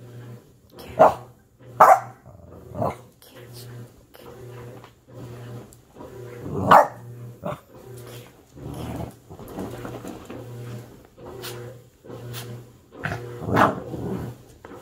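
A puppy growls playfully.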